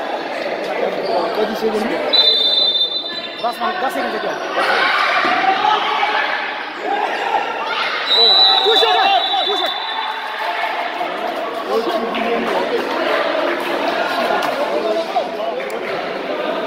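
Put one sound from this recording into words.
A crowd of spectators chatters and cheers in a large echoing hall.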